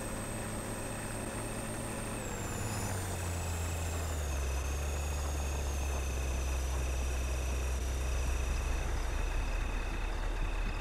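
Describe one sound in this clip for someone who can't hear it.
A van engine hums low and shifts in pitch as the van drives.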